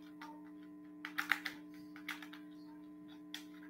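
A plastic bottle crackles in someone's hands.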